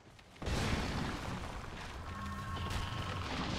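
A magic spell bursts with a rushing whoosh.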